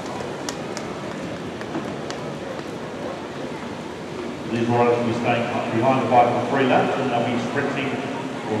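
Bicycle wheels whir on a wooden track.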